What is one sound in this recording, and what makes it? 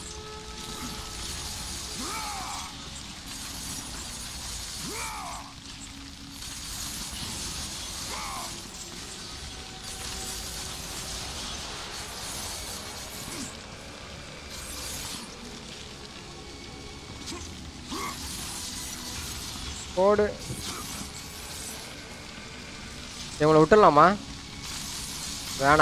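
Chained blades whoosh through the air and slash repeatedly.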